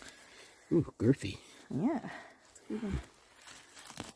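A small trowel scrapes and digs into soil.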